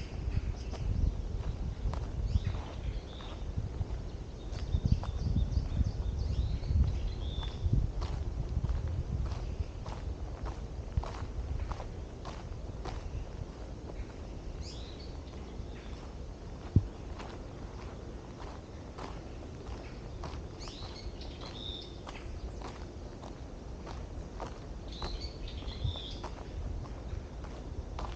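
Footsteps crunch steadily on a gravel path outdoors.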